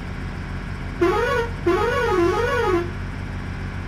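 A bus horn plays a warbling musical tune.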